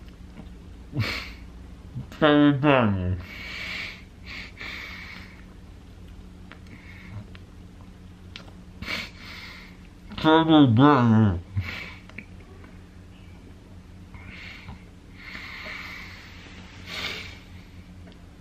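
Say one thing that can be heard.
A young man blows air out through pursed lips close by.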